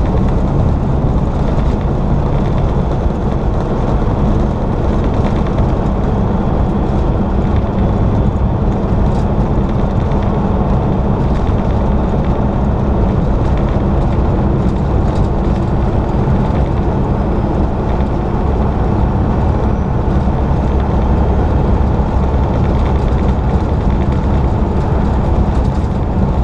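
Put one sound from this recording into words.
Tyres rumble steadily on a road.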